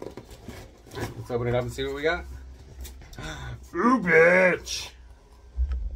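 A man speaks close to a microphone in a calm, deep voice.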